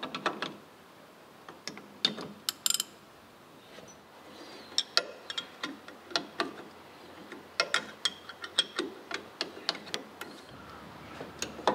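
Metal tools clink and knock against a machine.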